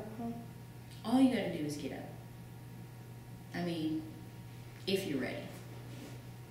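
A young woman speaks briefly in short bursts, close by.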